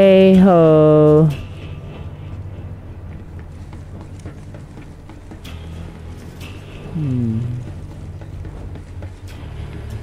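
Footsteps clang on a metal grating.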